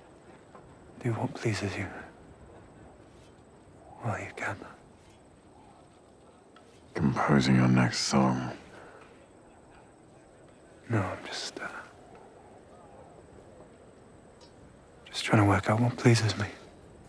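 A man speaks in a low, calm voice, with pauses.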